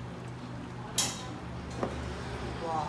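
Metal tongs clink against a hot pan.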